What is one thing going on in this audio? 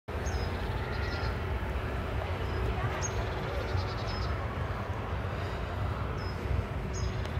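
Wind blows through the leaves of tall trees outdoors.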